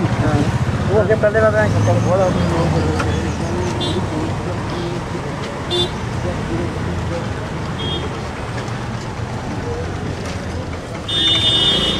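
A crowd of men murmur and talk nearby.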